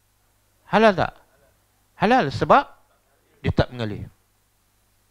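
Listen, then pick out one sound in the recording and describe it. A middle-aged man lectures through a headset microphone.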